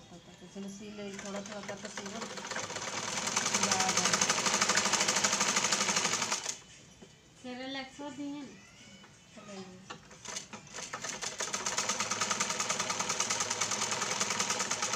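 A sewing machine whirs rapidly as it stitches.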